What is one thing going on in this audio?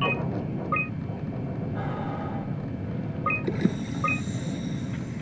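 Short electronic menu beeps chime a few times.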